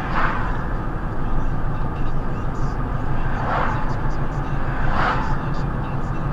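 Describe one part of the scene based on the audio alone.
Oncoming cars whoosh past.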